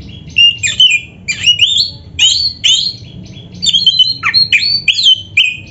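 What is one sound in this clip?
A songbird sings loud, rapid whistling phrases close by.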